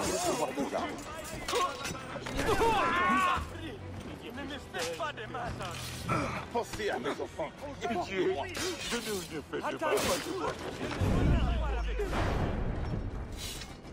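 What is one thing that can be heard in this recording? Swords clash and strike in a close fight.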